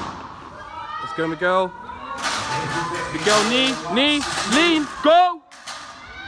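Men shout and cheer loudly close by in a large echoing hall.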